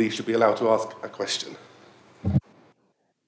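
A man speaks into a microphone in a calm voice.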